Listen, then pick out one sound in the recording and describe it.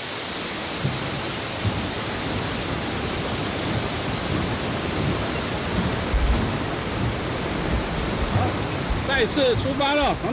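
Footsteps clank on a metal footbridge.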